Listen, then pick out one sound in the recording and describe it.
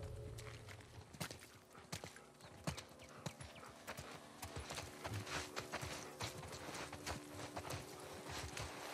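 Tall grass rustles and swishes as someone creeps through it.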